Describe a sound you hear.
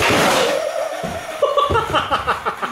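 A skater thuds onto a wooden ramp.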